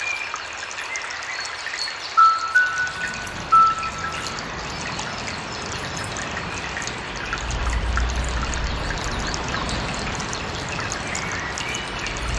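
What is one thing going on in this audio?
Water ripples and laps steadily close by.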